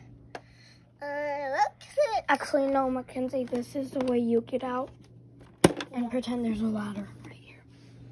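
A toy house plays a high, cheerful recorded voice through a small tinny speaker.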